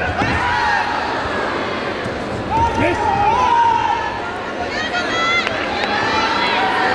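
A large crowd shouts and cheers in an echoing hall.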